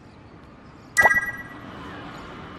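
A bright game chime rings out.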